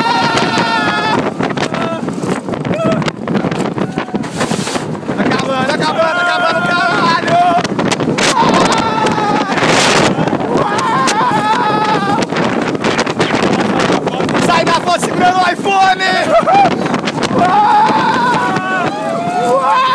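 A roller coaster rattles and roars along its track.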